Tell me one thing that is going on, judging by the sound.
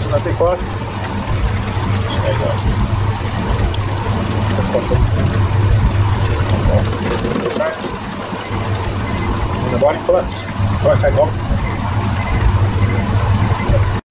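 Hot oil bubbles and sizzles steadily.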